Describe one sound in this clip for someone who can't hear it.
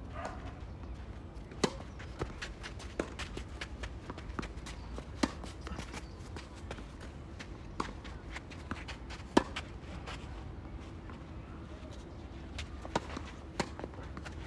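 A tennis ball bounces on a clay court.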